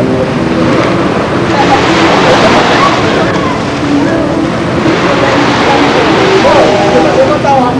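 Shallow waves wash and splash steadily.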